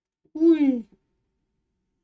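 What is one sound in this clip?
A young man exclaims briefly into a microphone, his voice falling in pitch.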